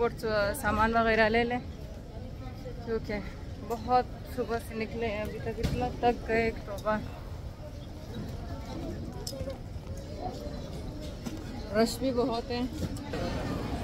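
A young woman talks close up, with animation.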